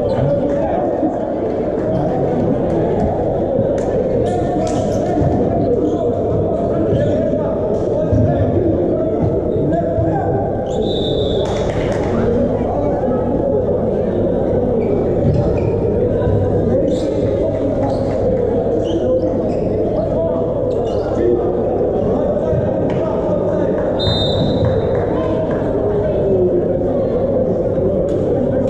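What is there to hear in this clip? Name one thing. A volleyball is struck in a large echoing hall.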